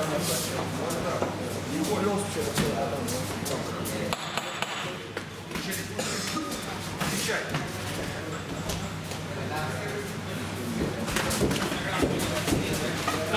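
Boxers' shoes shuffle and squeak on the ring floor.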